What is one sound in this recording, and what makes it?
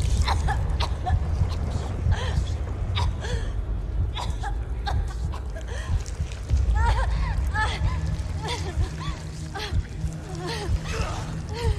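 A young woman gasps and whimpers close by.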